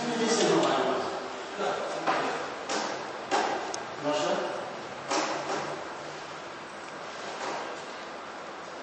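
A man speaks with animation in a reverberant room.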